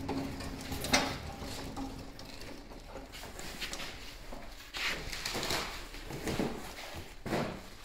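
Footsteps shuffle on a concrete floor.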